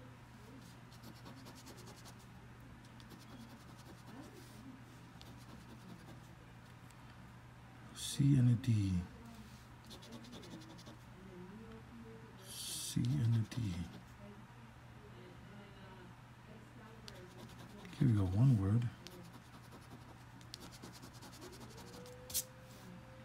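A coin scrapes and scratches across a scratch card.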